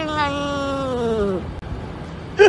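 A cat makes a long, falling humming meow.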